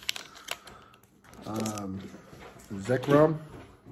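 Cards rustle and slide against each other.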